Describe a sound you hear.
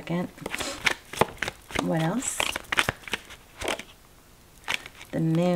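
Playing cards shuffle and flick against each other, close by.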